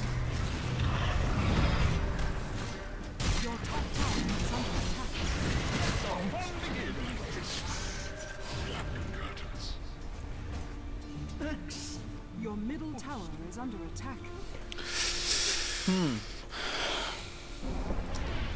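Game spells crackle and clash in a fight.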